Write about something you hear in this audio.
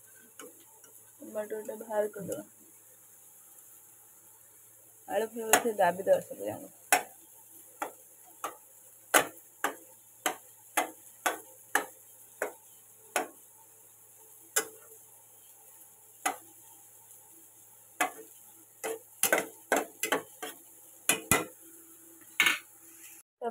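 A metal spatula scrapes and knocks against a metal pot.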